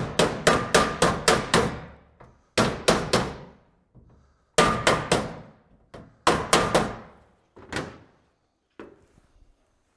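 A mallet taps rapidly on a hard surface.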